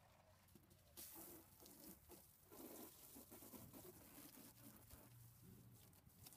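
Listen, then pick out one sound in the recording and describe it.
Water sprays from a hose, splashing onto plastic tubs.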